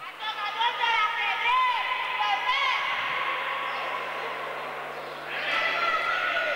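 Sneakers squeak on an indoor court in a large echoing hall.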